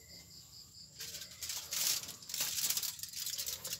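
A charcoal fire hisses and crackles.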